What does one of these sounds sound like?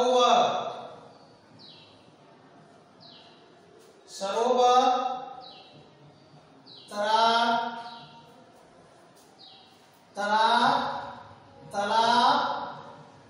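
A man reads out words loudly and slowly.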